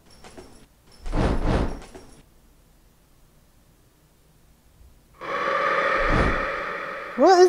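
Game sword slashes ring with sharp metallic clangs.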